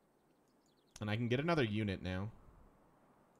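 A man speaks briefly and animatedly into a close microphone.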